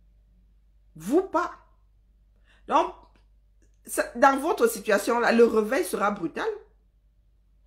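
A woman speaks close to a microphone, with emotion and pauses.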